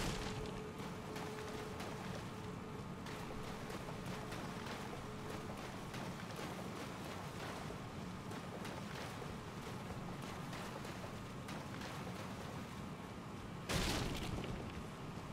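Footsteps splash rapidly through shallow water.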